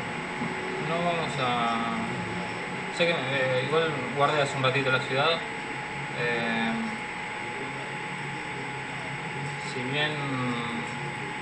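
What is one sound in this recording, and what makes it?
A young man speaks casually into a microphone.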